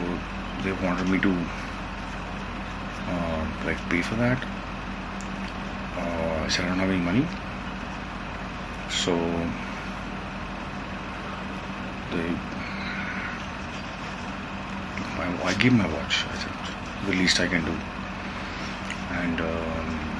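A man speaks calmly and haltingly into a phone microphone up close, with long pauses.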